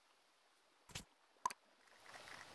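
Two short menu blips sound.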